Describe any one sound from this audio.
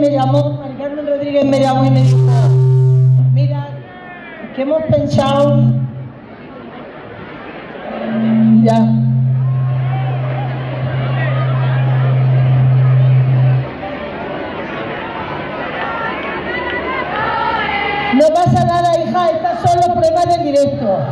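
A large crowd outdoors cheers and chatters below.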